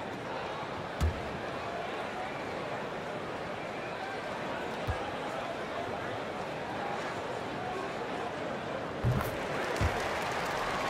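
A basketball bounces on a hardwood court a few times.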